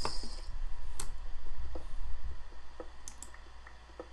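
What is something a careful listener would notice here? A pickaxe chips at stone in quick, dry knocks.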